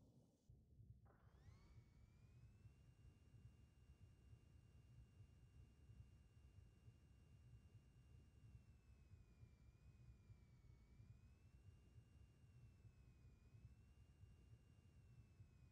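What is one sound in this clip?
A jetpack hums steadily with a droning whine.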